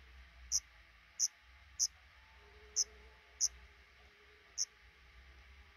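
Nestling birds give short, high-pitched cheeps.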